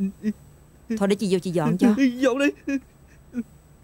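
A young woman speaks sharply with animation nearby.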